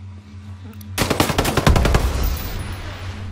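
A rifle fires a rapid burst of shots that ring out in a large echoing room.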